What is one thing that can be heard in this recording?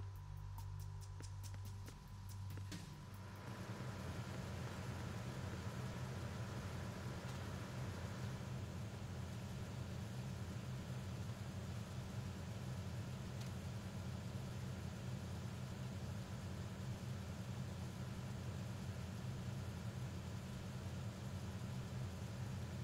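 A low machine hum drones steadily in a large echoing space.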